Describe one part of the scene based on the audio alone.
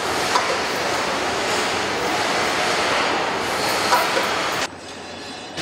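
Machinery clatters and hums loudly in a large echoing hall.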